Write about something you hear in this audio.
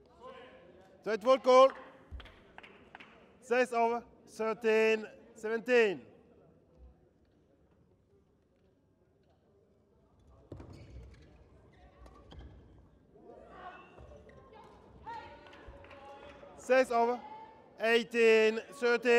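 Young women shout and cheer after a rally.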